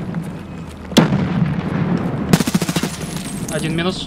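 Rifle bullets strike a concrete wall.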